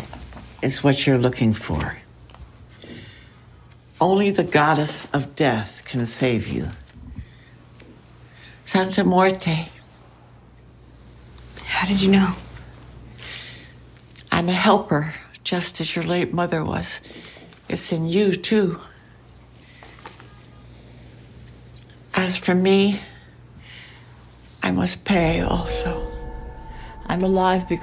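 An elderly woman speaks calmly and warmly, close by.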